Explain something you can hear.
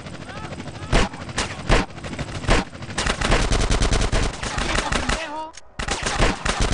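Rapid gunshots crack nearby.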